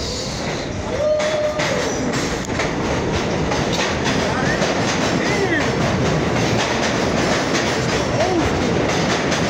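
Metal wheels squeal on the rails.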